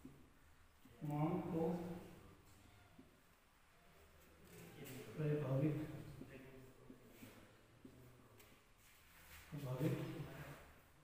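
A young man speaks slowly and clearly, as if teaching.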